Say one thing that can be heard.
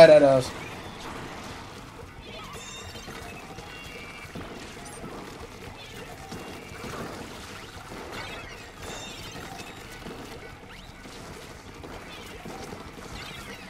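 Paint sprays and splatters in quick wet bursts.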